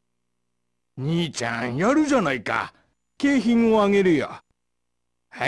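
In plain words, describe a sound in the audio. A middle-aged man speaks cheerfully and loudly.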